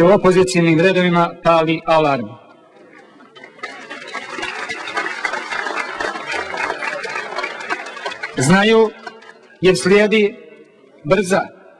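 A man speaks loudly and emphatically through a microphone in a large echoing hall.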